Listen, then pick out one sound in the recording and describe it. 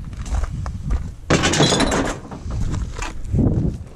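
Aluminium cans clatter and rattle in a pile.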